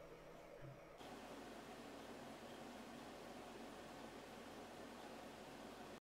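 Computer fans hum steadily.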